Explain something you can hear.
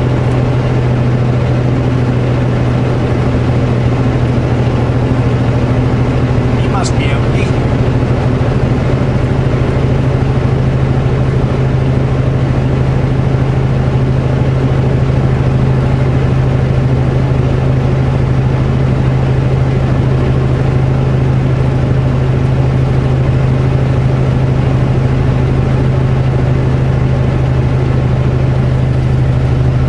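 Tyres roar on the highway.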